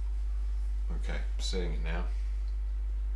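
A man mumbles briefly to himself.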